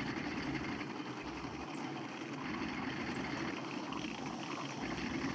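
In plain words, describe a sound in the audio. A tank engine rumbles steadily as the tank drives.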